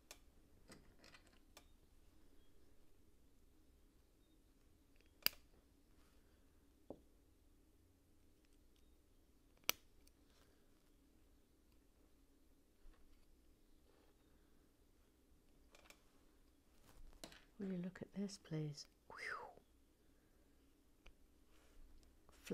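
Small plastic bricks click and snap together close by.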